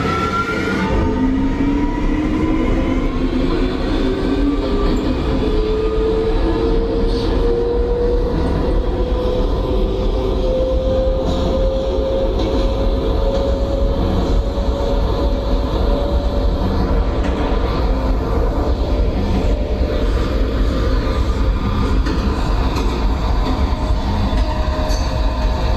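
An electric train motor whines, slowly rising in pitch as the train speeds up.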